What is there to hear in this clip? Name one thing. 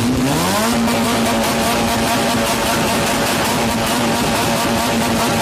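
A car engine revs up and then holds a loud, steady roar.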